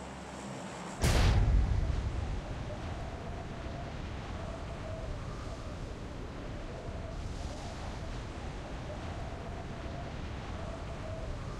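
Wind rushes loudly during a freefall, then settles into a steady roar.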